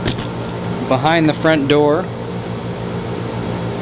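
A metal cabinet door clicks and swings open.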